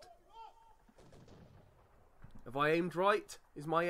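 Cannons fire a volley.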